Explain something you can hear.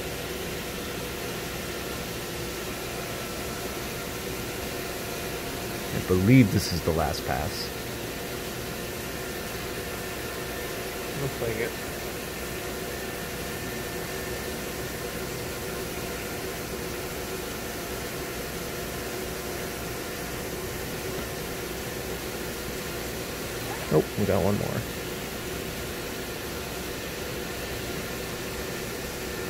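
A milling machine whirs steadily as its cutter grinds through a block.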